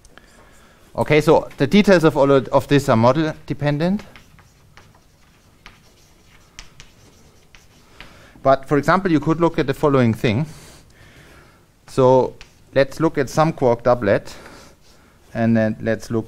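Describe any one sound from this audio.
A man lectures calmly and clearly.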